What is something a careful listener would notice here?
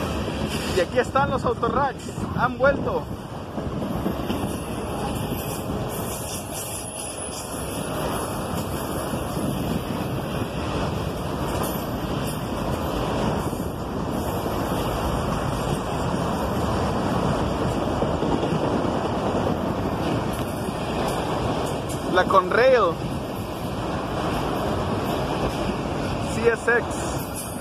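Train wheels squeal sharply now and then.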